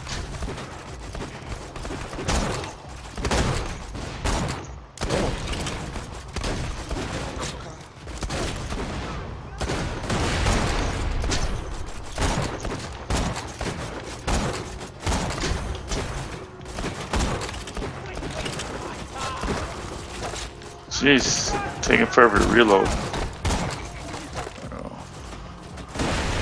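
A sniper rifle fires loud, sharp shots again and again.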